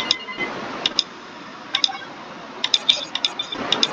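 Short electronic menu beeps chime.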